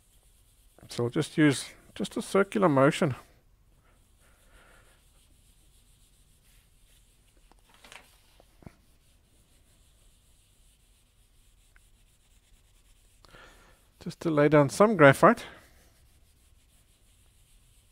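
A pencil scratches and rubs across paper.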